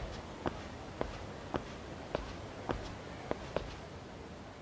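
Footsteps tap steadily on hard pavement.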